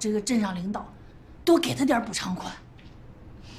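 A middle-aged woman speaks pleadingly close by.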